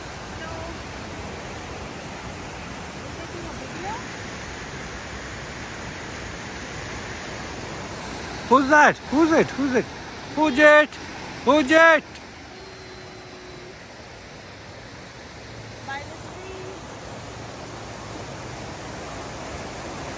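A river rushes steadily nearby.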